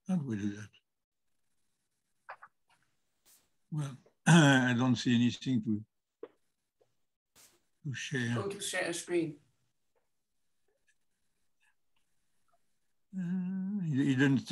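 An older man speaks calmly over an online call, in short bursts with pauses.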